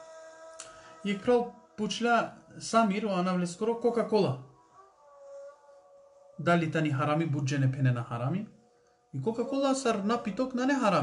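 A middle-aged man speaks calmly and close up, with pauses.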